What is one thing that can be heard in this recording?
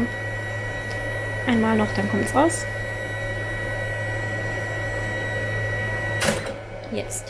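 A printer hums steadily.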